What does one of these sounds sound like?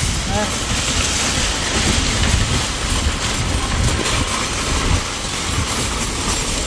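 A shopping cart rattles as its wheels roll over pavement.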